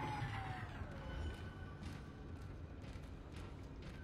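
Heavy metal footsteps clank on a hard floor.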